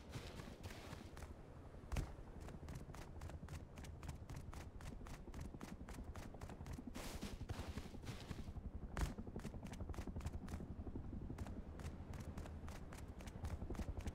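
Footsteps crunch steadily over dry ground and grass.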